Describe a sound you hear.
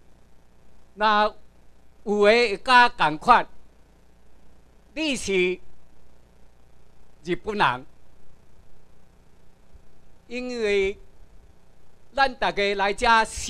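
A man speaks calmly through a microphone, in short phrases with pauses.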